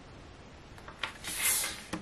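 Fingers shift a stiff card with a soft rustle.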